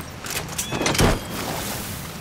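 A suppressed rifle fires a single muffled shot.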